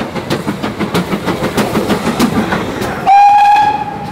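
A steam locomotive chuffs hard in quick, even beats.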